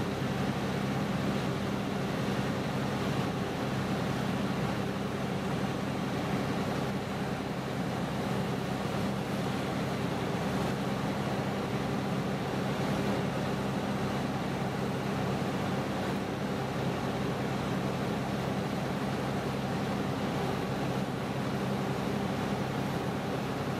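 A fire hose sprays water with a steady hiss.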